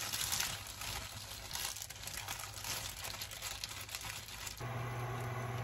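Plastic gloves crinkle and rustle.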